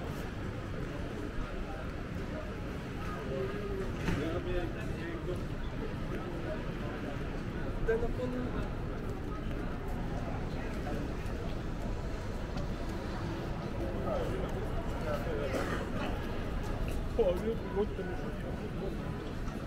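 A crowd of passers-by murmurs nearby in a busy street outdoors.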